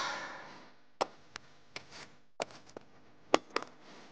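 A small metal tin clicks and rattles in someone's hands.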